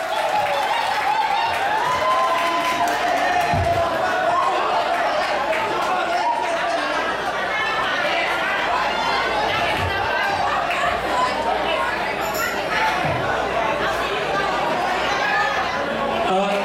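A crowd of people chatters and calls out.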